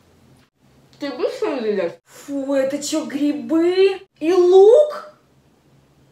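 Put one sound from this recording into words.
A young woman whimpers and wails nearby.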